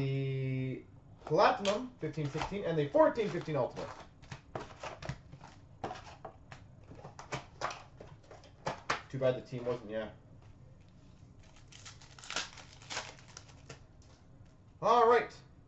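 Foil wrappers crinkle and tear.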